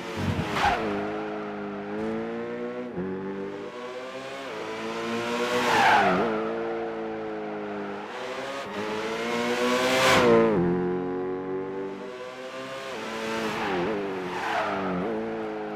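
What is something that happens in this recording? A racing car engine roars, rising and falling in pitch as it speeds past and shifts gears.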